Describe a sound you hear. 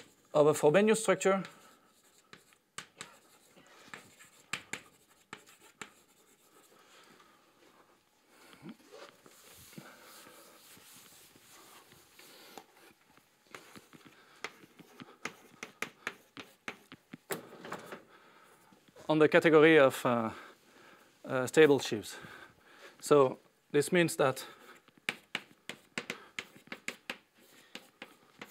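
Chalk taps and scratches on a chalkboard.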